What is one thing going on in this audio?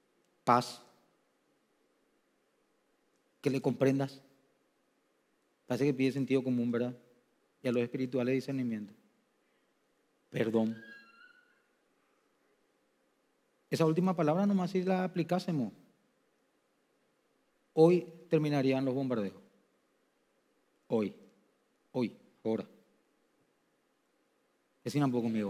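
A man speaks with emphasis through a microphone, pausing often.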